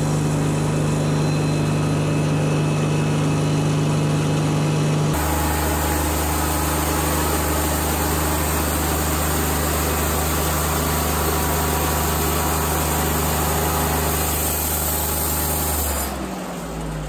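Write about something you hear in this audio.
A band saw mill cuts through a log with a loud, steady whine.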